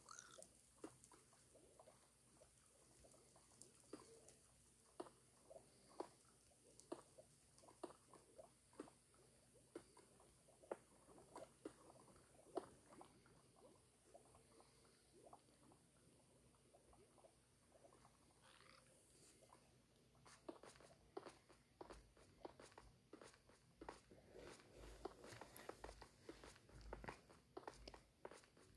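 Lava pops and crackles softly.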